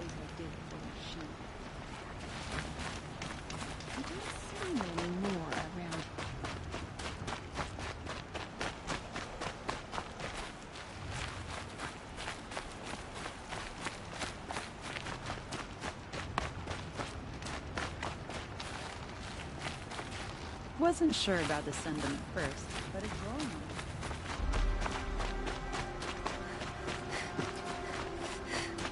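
Footsteps patter quickly on stone.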